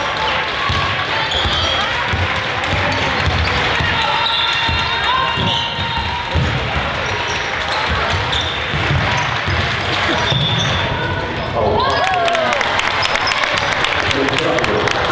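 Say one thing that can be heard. A basketball thumps as it bounces on the floor.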